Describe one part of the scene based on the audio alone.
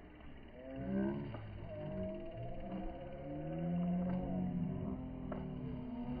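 A racing bicycle whirs past close by.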